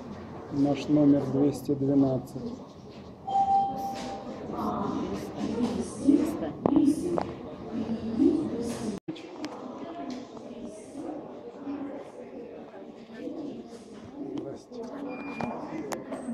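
Men and women talk in a busy hall.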